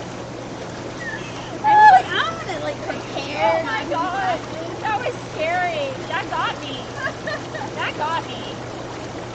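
Young women talk and laugh with animation close by.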